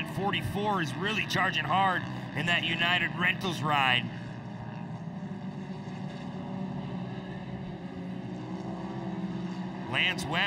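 Off-road racing buggy engines roar and rev.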